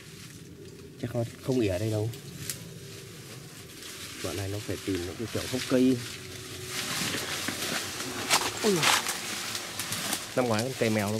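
A chimpanzee gives short hooting grunts nearby.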